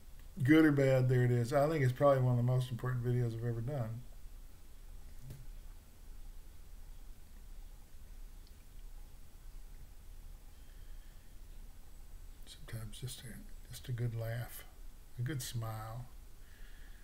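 An elderly man speaks calmly and close to a microphone, as if on an online call.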